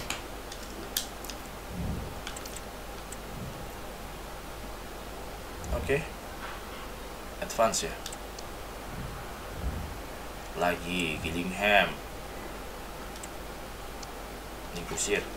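Short soft clicks sound as menu options change.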